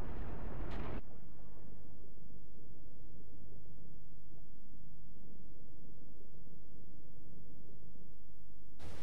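A muffled underwater rumble drones low and steady.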